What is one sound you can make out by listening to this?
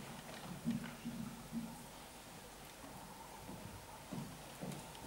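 A young woman sings into a microphone in a large hall.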